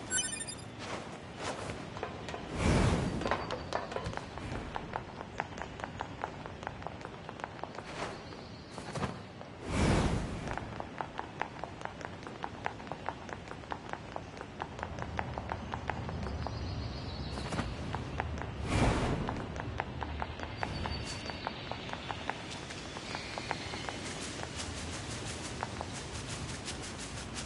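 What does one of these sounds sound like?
Quick footsteps patter steadily on hard ground.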